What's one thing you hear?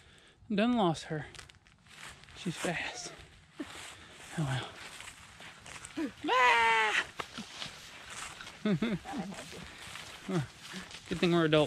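Dry leaves crunch and rustle underfoot as a person walks.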